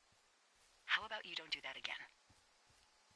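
A woman speaks calmly over a crackling two-way radio.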